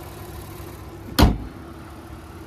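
A car hood slams shut.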